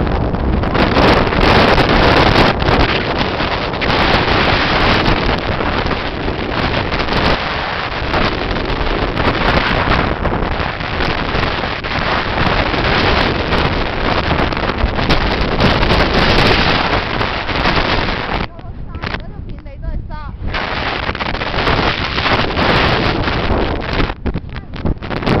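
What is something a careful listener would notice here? Strong wind gusts and roars outdoors, buffeting loudly.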